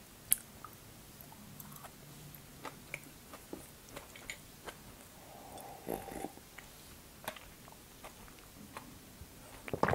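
A young woman chews food with soft, moist clicks.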